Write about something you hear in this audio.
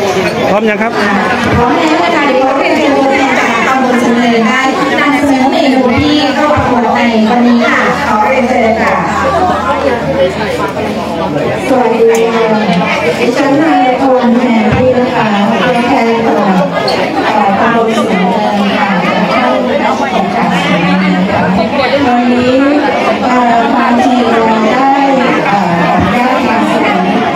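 A woman speaks into a microphone over a loudspeaker, explaining with animation.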